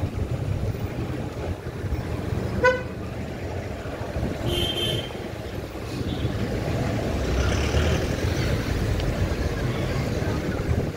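Engines rumble and idle in slow street traffic outdoors.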